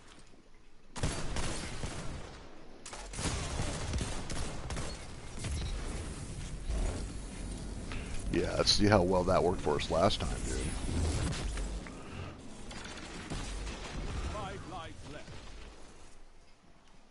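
Gunshots fire in rapid bursts.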